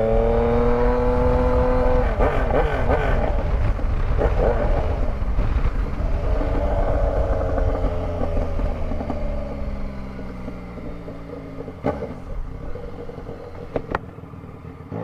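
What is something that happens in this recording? Wind rushes past the rider's microphone while riding.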